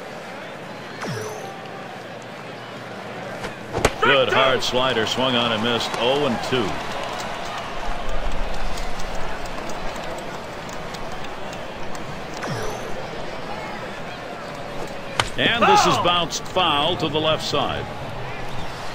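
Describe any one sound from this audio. A crowd murmurs steadily in a large ballpark.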